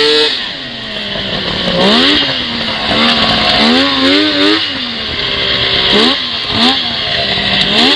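A car engine revs up and down sharply.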